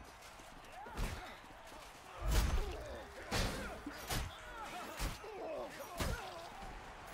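Heavy weapon blows land with sharp thuds and clangs.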